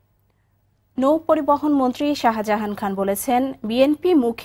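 A young woman reads out the news calmly into a microphone.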